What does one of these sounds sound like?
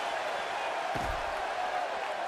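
A stick strikes a body with a sharp thud.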